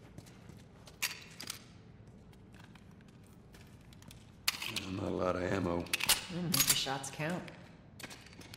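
A pistol clicks and clacks as it is handled.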